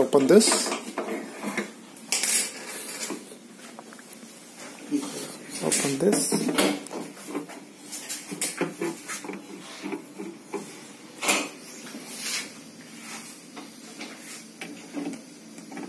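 A screwdriver scrapes and clicks against a plastic casing.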